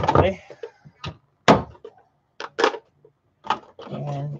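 Plastic parts clatter and knock as they are handled.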